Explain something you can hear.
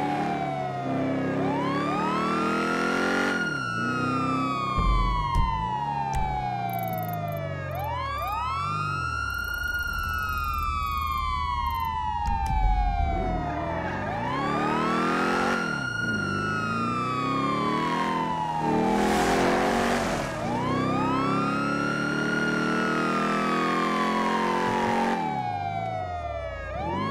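An engine revs as a vehicle drives.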